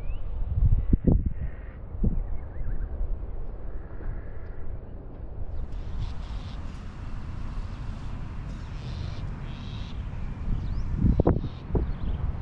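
A golf putter taps a ball with a short click.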